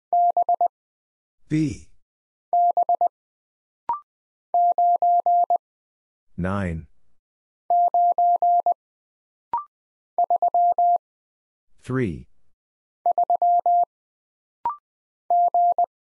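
A telegraph key taps out Morse code as quick bursts of steady beeps.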